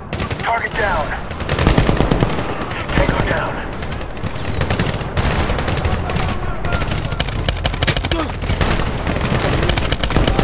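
Rapid gunfire rattles in bursts, close by.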